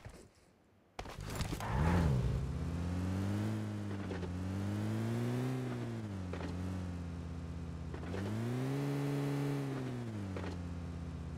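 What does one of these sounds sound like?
A car engine starts up and revs, rising and falling as the vehicle drives.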